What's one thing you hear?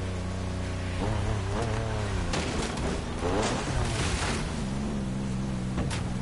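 Tyres skid and rumble over rough ground.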